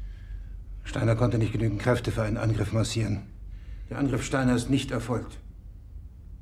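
A middle-aged man speaks calmly and seriously.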